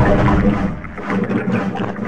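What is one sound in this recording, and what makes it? Bubbles gurgle underwater.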